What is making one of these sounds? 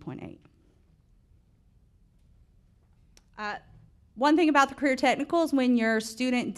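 A woman speaks calmly into a microphone, with short pauses.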